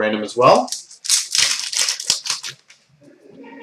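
A foil wrapper crinkles and tears open.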